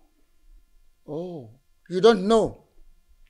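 An elderly man speaks loudly with animation close by.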